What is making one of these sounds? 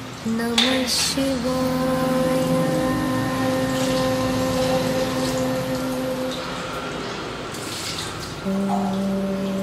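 A man chants in long, steady tones.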